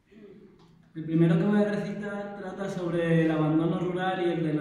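A young man speaks clearly into a microphone in a large echoing hall.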